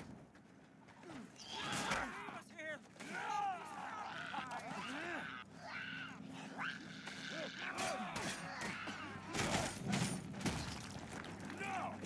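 Blows thud in a brawl.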